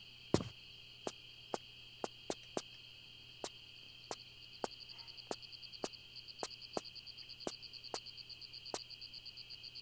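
Footsteps clank on a metal grating.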